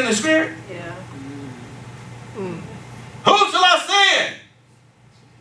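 A man preaches with animation, his voice echoing in a large room.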